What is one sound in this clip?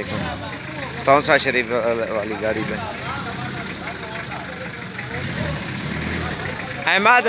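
Men talk loudly close by, outdoors.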